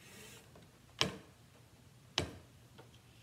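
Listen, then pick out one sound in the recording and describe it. A board knocks down onto a table.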